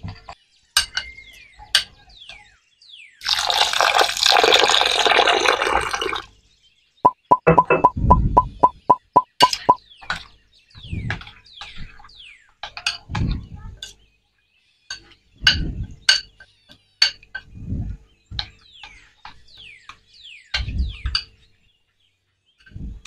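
A spoon scrapes and clinks against a glass bowl.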